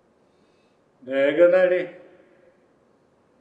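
A man speaks a few words in an echoing hall.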